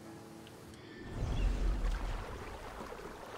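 Water splashes loudly as a body plunges in.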